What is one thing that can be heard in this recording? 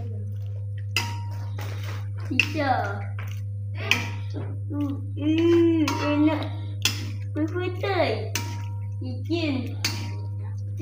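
A metal ladle clinks against a wok.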